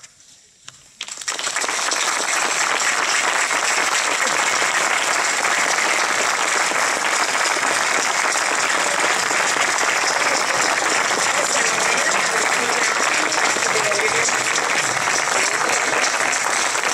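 An audience applauds loudly and steadily.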